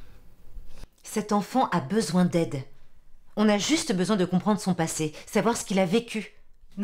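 A middle-aged woman speaks calmly and closely.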